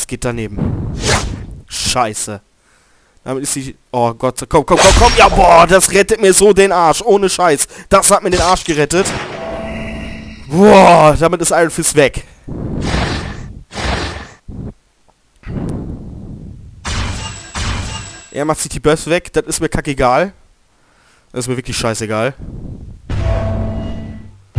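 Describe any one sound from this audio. Blows and slashes land with sharp, punchy impacts.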